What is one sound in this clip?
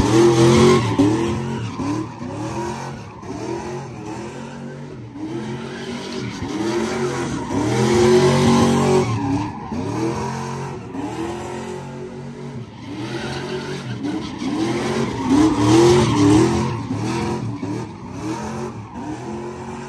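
Car engines roar and rev loudly, rising and falling over and over.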